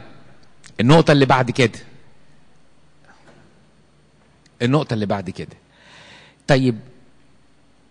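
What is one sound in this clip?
An elderly man speaks with animation into a microphone, heard through a loudspeaker in an echoing hall.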